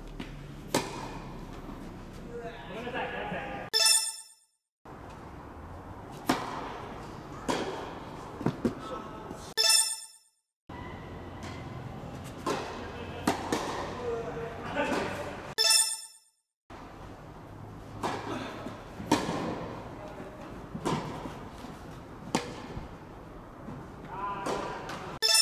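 Tennis balls are struck sharply by rackets, echoing in a large indoor hall.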